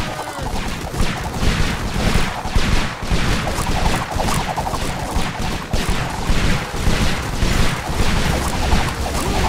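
Rapid gunfire rattles without a break.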